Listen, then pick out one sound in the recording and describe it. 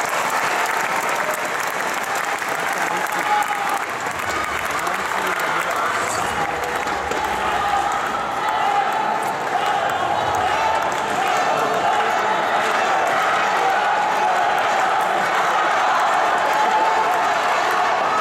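A large crowd chants and cheers loudly in a big echoing arena.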